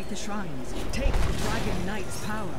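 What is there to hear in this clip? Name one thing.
A fiery explosion bursts in a video game.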